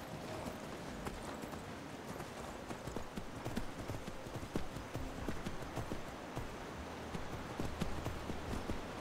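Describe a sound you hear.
A horse's hooves clop steadily on stone and wooden planks.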